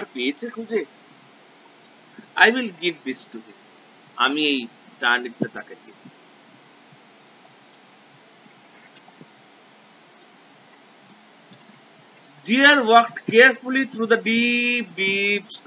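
A man speaks calmly close to a microphone, in bursts with pauses.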